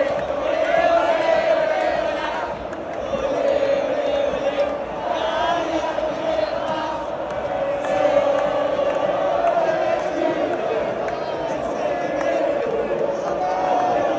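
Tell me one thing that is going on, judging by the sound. A young woman close by cheers and laughs.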